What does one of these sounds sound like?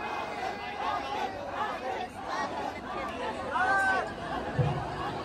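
Young people in the crowd sing along loudly.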